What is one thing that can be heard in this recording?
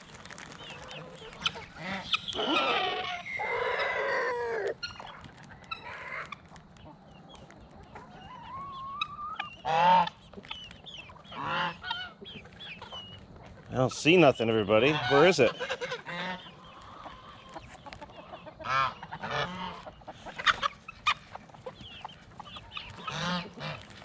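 Hens cluck.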